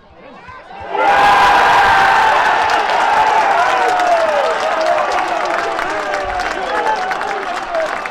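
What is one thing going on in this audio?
A crowd of spectators cheers loudly.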